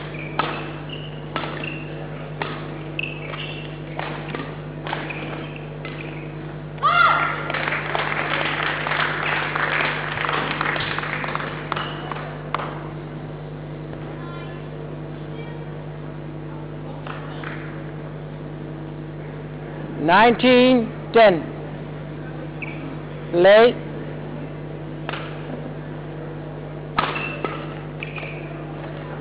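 Badminton rackets strike a shuttlecock with sharp pops in an echoing hall.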